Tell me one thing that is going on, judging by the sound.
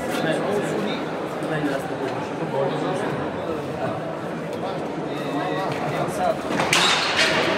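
A ball smacks against a wall, echoing in a large hall.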